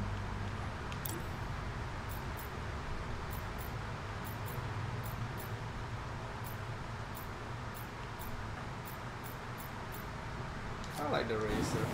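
Menu clicks tick one after another.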